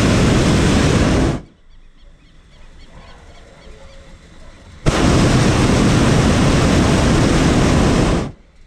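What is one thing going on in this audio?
A hot-air balloon's propane burner roars in bursts.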